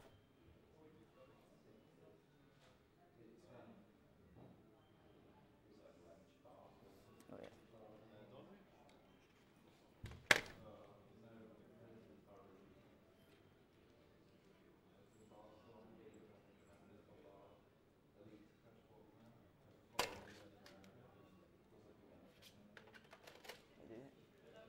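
Several young men talk quietly in a room.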